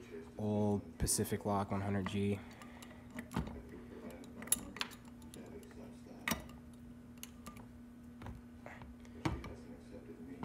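A small metal lock clinks and clicks against metal.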